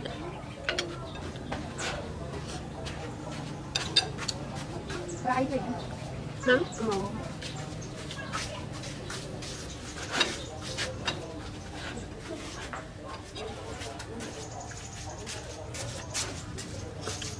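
A spoon and chopsticks clink against a bowl.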